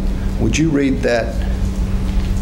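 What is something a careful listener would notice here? A young woman says a few words briefly and quietly into a microphone.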